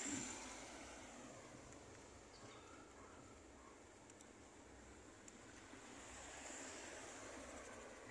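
Cars drive past on a nearby road.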